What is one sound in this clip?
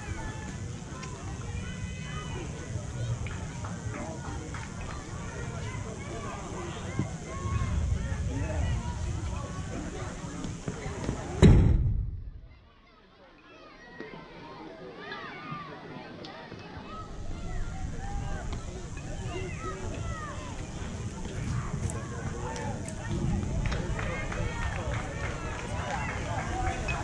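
Distant voices of players and spectators chatter and call out outdoors.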